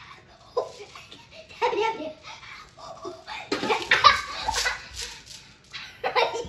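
A young girl speaks loudly and excitedly close by.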